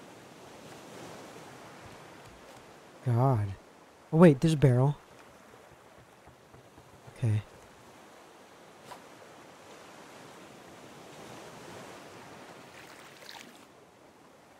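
Gentle sea waves lap softly all around.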